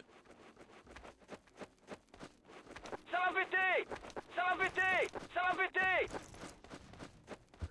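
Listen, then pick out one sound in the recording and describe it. Footsteps tread steadily on hard ground.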